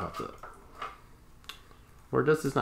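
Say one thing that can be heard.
A small plastic toy part clicks as it is fitted into place.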